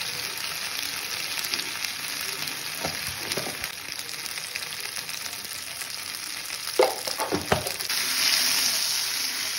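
Spices sizzle in hot oil in a pan.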